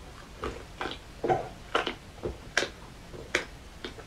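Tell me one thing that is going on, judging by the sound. A young woman gulps a drink from a can.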